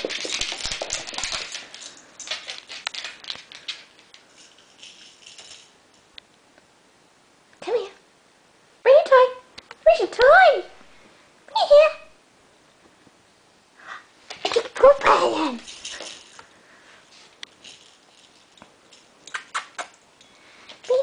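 A small dog's paws scuffle and patter on a wooden floor.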